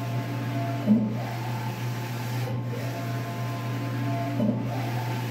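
A large printer hums steadily.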